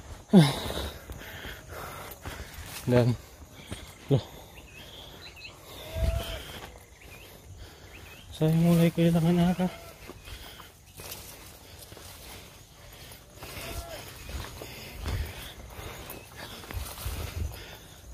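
Footsteps tread on a dirt trail.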